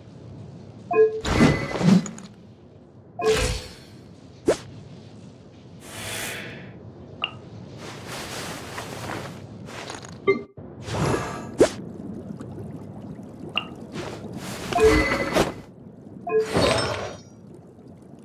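Short chimes and airy whooshes sound again and again as game menu tabs change.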